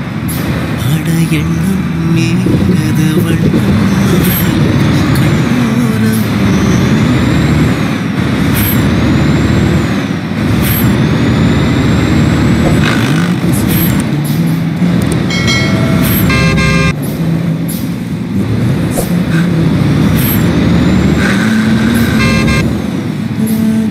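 A bus engine hums and rumbles steadily as it drives along a road.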